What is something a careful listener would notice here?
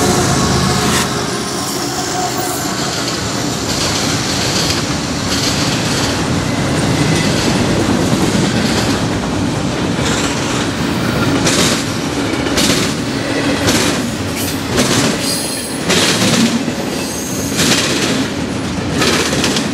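Freight cars rattle and clatter steadily over the rails.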